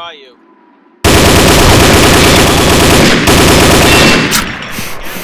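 A rifle fires a rapid burst of loud gunshots.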